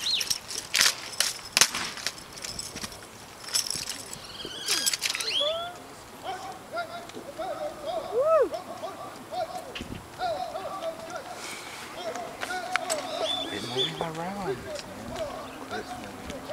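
Drill rifles clack as a drill team spins and catches them.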